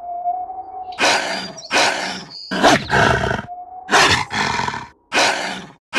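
A wolf snarls and growls in bursts.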